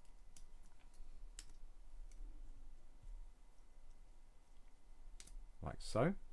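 Small plastic bricks click together.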